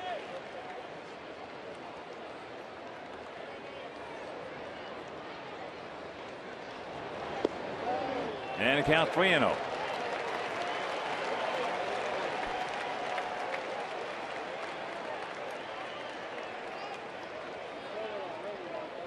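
A crowd murmurs steadily in a large outdoor stadium.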